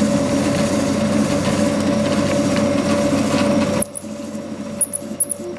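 A 3D printer's stepper motors whir and hum steadily, then turn quieter with short high chirps.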